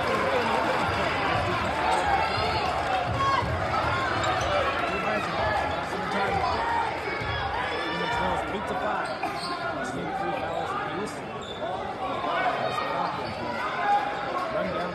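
A large indoor crowd chatters and cheers, echoing through a big hall.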